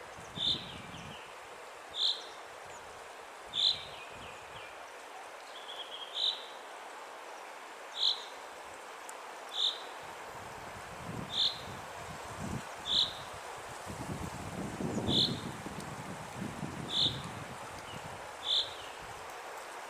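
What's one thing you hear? A waterfall pours onto rocks with a steady rushing roar.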